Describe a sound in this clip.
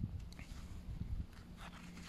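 A stiff brush scrapes at a small object.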